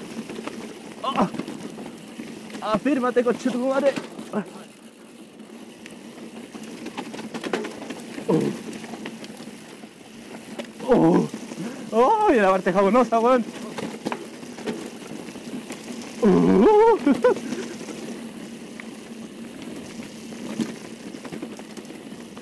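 Bicycle tyres roll over a bumpy dirt trail.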